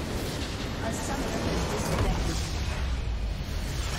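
A structure explodes with a deep rumble.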